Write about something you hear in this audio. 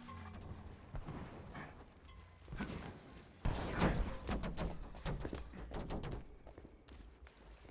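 Footsteps scuff on stone and dirt.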